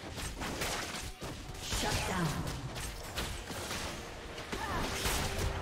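Game spell effects and weapon hits crackle and clash in quick bursts.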